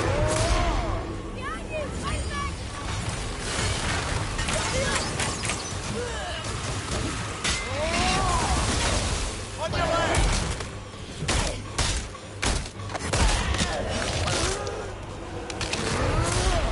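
Creatures screech and howl in a fight.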